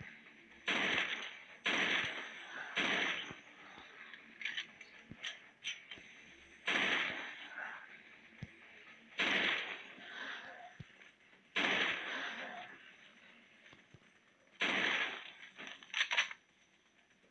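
Pistol shots bang and echo, one at a time.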